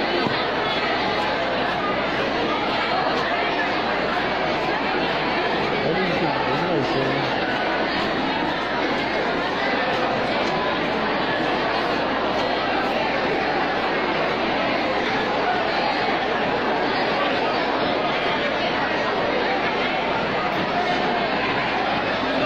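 A large crowd murmurs and chatters in a wide open space.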